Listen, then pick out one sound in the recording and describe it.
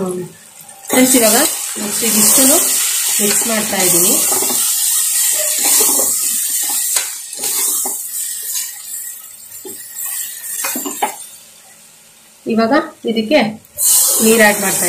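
A metal spoon scrapes and clinks against a steel pot.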